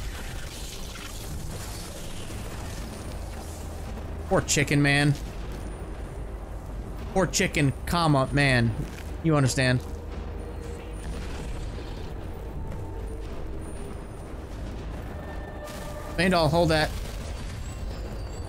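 A frost spell hisses and crackles.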